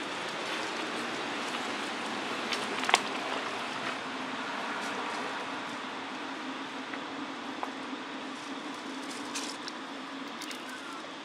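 Dry leaves rustle and crackle as monkeys move on the ground.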